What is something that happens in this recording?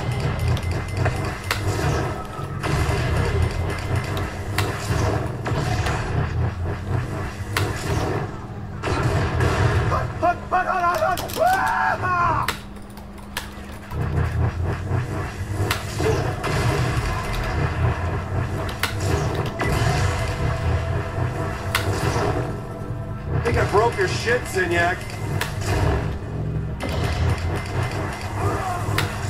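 Computer keys click rapidly under typing fingers.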